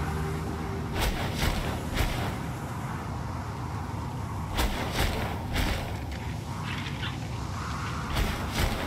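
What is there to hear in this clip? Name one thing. Wings flap with soft whooshing beats.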